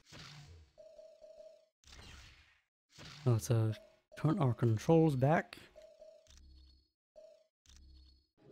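Short electronic menu beeps sound now and then.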